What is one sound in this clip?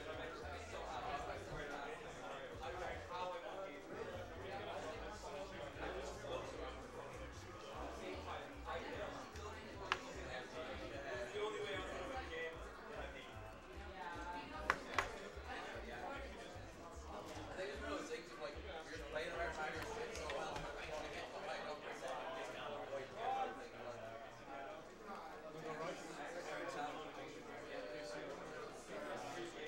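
A crowd of people chatters in a large, busy hall.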